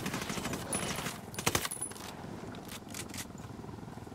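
Rifle shots crack sharply.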